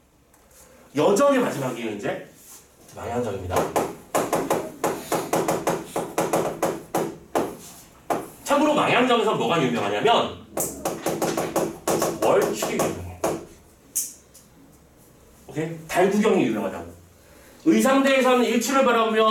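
A man speaks steadily, close to a microphone, as if lecturing.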